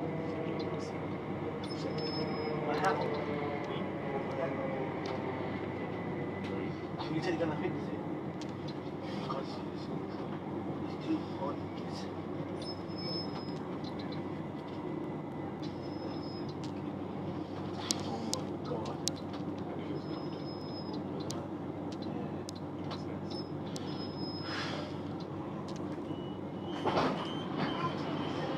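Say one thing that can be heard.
A train rumbles steadily along the tracks from inside a carriage.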